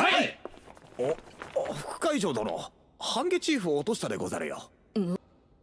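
A young man speaks politely and calmly.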